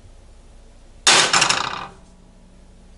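A metal pan clatters and scrapes onto a stove grate.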